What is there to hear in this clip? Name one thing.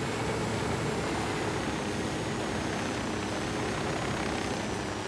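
A helicopter's rotor thumps and its engine roars steadily up close.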